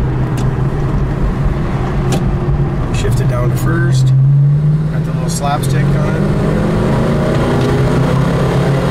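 A car engine hums steadily and revs up briefly.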